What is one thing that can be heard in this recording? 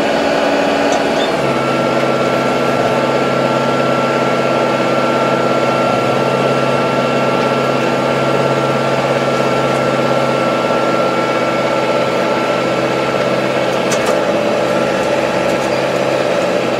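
A tractor engine hums loudly and steadily from inside the cab.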